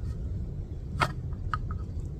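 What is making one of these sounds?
A sharp knock sounds close by.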